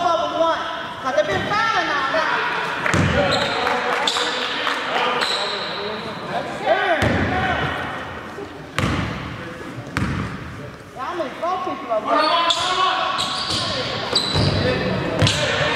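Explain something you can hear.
Young men shout and call out in a large echoing gym.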